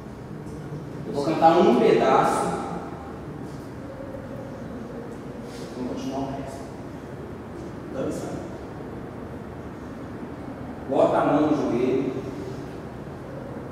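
A young man speaks loudly and with animation nearby.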